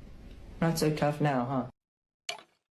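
A young person speaks close to a phone microphone.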